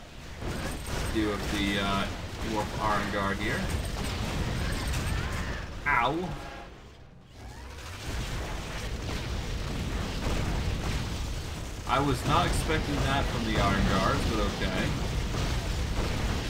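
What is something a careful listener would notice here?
Magic blasts and crackles during a fight.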